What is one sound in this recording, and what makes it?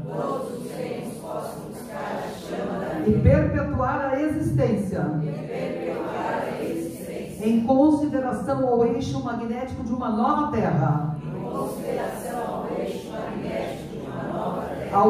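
An elderly woman reads aloud calmly into a microphone.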